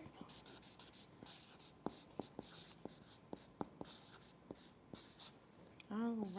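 A marker squeaks and taps on paper.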